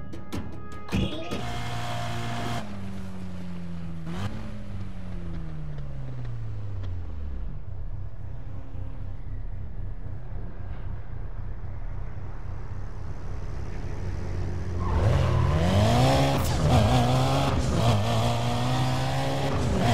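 A car engine idles, then revs and roars as the car speeds away.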